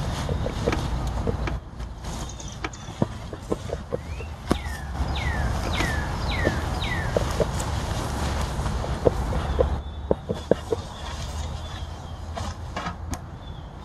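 A bee smoker's bellows puff out bursts of air.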